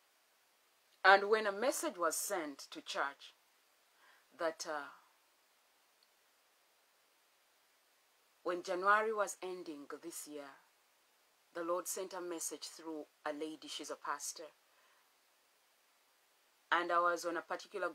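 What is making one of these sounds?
A woman speaks close to a microphone, calmly and with pauses.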